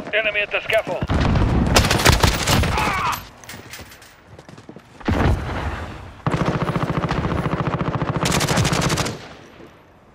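A rifle fires in a rapid burst of loud shots.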